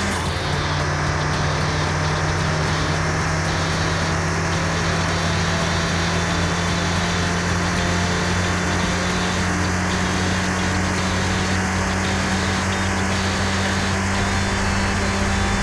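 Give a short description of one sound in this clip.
A car engine roars steadily at high speed, its pitch slowly rising.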